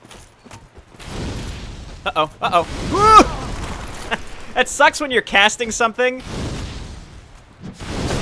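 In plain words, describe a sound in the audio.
A fireball whooshes and bursts with a roar of flames.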